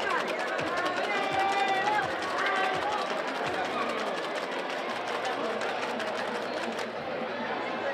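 Ice rattles in a cocktail shaker being shaken hard.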